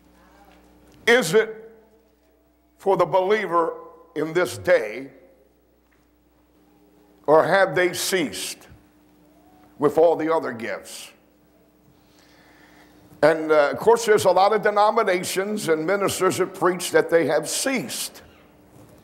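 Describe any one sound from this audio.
An elderly man preaches with animation through a microphone, in bursts with pauses.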